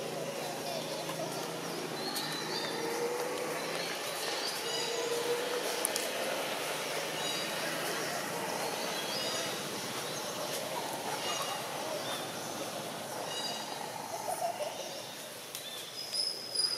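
A baby monkey squeaks softly.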